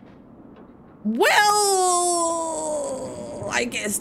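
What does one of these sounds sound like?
A young man lets out a loud, long, drawn-out cry into a microphone.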